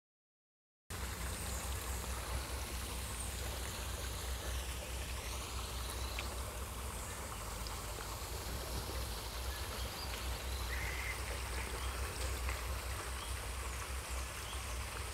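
A stream of water trickles and gurgles gently close by.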